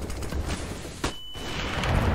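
A grenade bursts with a sharp bang.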